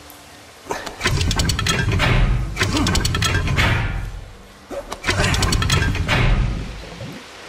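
Water rushes through pipes.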